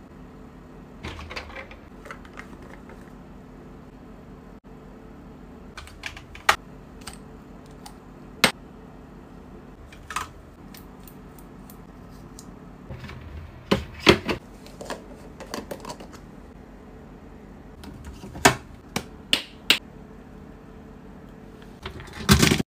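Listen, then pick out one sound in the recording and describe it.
Long fingernails tap on plastic jars and tubes.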